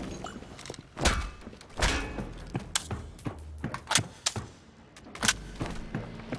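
Guns fire loud, sharp shots one after another.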